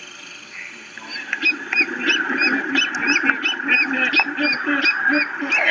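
A large bird calls with rapid, repeated squawks.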